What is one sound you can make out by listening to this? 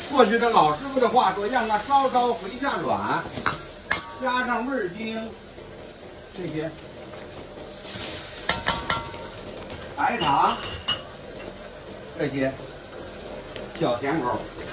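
Sauce bubbles and sizzles gently in a wok.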